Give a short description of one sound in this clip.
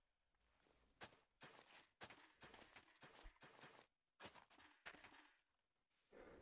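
Soft crunches of earth being dug and tilled come in quick bursts.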